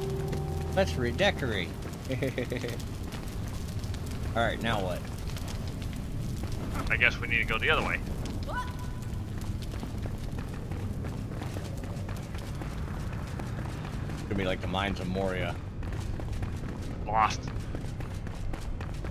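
Footsteps patter quickly on a stone floor.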